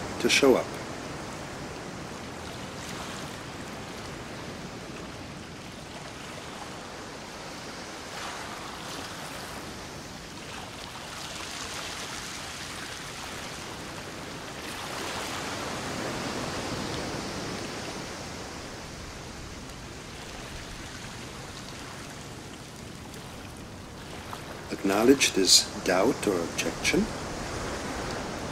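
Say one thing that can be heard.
Waves crash and churn against rocks.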